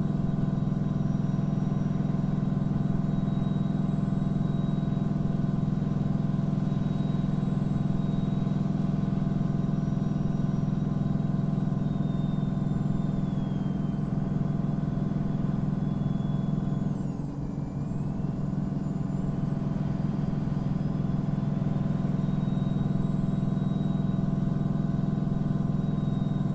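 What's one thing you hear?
A truck engine drones steadily, with a brief drop as the gears shift.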